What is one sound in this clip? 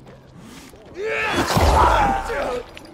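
A zombie snarls and growls loudly up close.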